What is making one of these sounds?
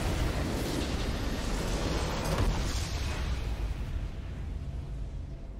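A triumphant game victory sound bursts out loudly and then fades away.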